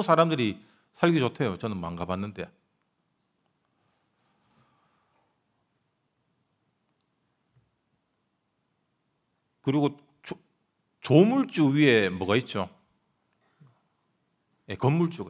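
A young man speaks calmly into a microphone, with long pauses.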